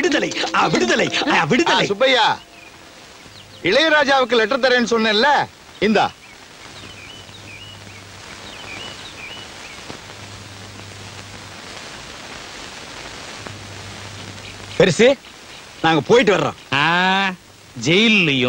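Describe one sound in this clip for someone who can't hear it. Men talk loudly and with animation outdoors.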